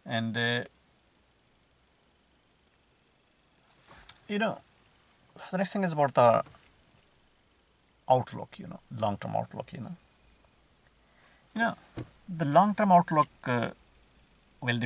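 A man speaks calmly and close by, with pauses between phrases.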